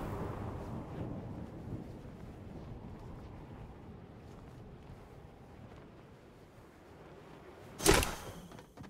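Wind rushes softly past a character gliding down in a video game.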